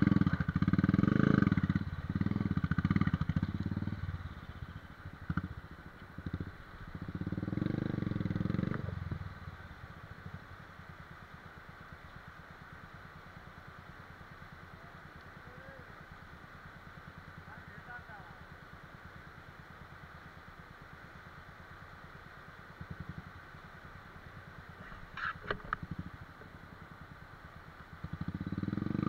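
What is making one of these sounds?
A motorcycle engine idles with a steady throb.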